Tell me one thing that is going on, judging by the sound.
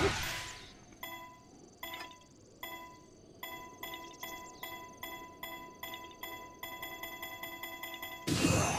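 A chiming ticking sounds in a steady, quickening rhythm.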